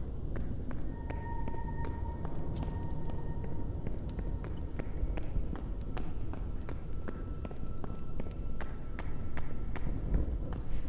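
A torch fire crackles and roars steadily.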